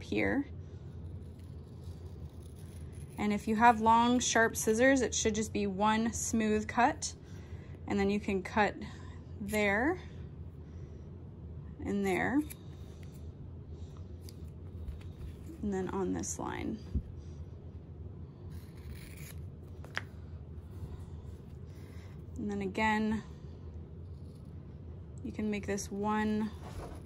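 Scissors snip through stiff paper.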